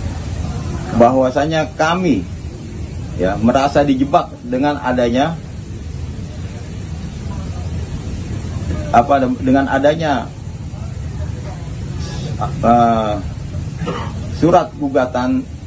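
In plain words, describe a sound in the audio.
A middle-aged man speaks calmly and haltingly into a nearby microphone.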